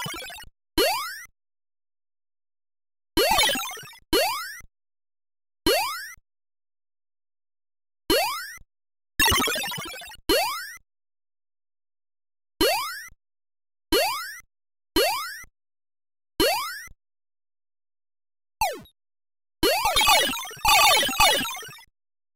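Short electronic sweeping blips sound each time a game character jumps.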